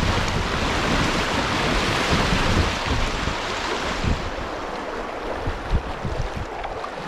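A kayak paddle dips and splashes in the water.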